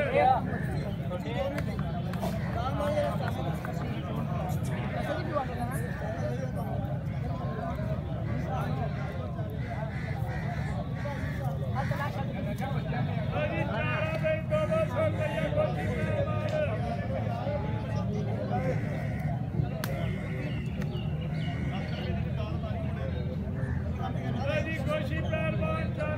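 A crowd of men chatter outdoors.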